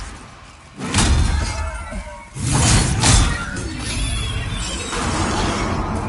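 A sword swings and strikes.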